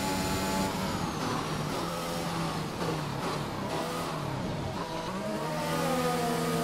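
A racing car engine drops in pitch as the car slows hard.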